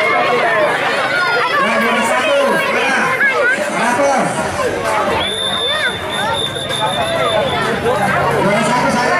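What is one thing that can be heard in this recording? A large outdoor crowd of children and adults chatters and shouts all around.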